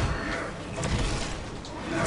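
A fireball whooshes and bursts.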